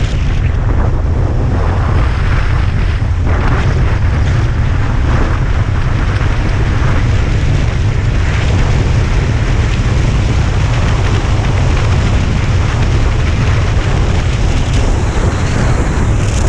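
Tyres roll steadily on an asphalt road.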